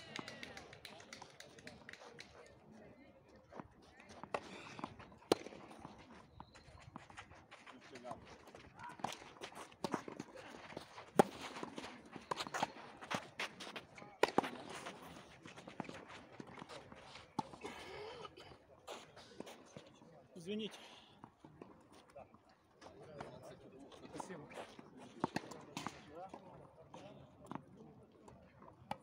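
Tennis balls are struck with rackets in a sharp, quick rally.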